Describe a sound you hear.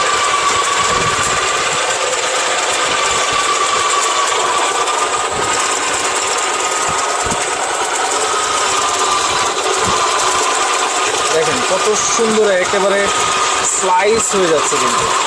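An electric food processor whirs steadily with a high motor whine.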